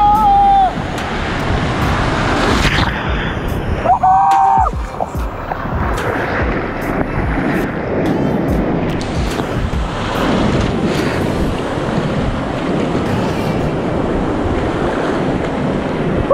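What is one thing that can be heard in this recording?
Water splashes and crashes against an inflatable raft.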